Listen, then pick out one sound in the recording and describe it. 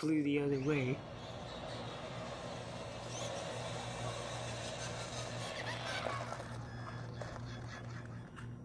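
A small toy car's electric motor whirs as the car drives closer.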